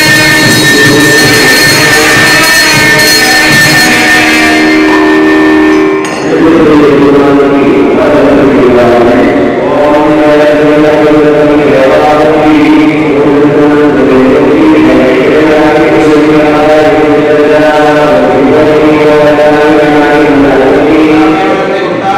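A man chants steadily through a microphone.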